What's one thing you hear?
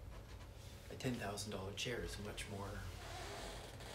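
A man speaks briefly and calmly, close by.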